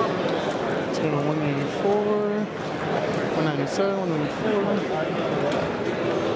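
A man speaks loudly nearby over the crowd.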